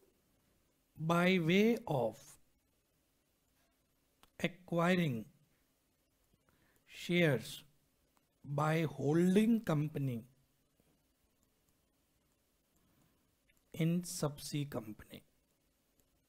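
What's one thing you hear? A man speaks calmly and slowly into a close microphone, in short phrases with pauses.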